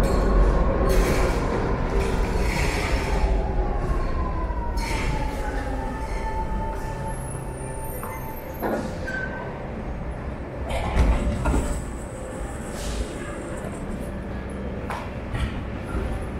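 Footsteps tap on a hard floor and stairs.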